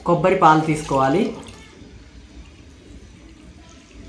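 Water pours from a vessel into a pot with a soft splashing.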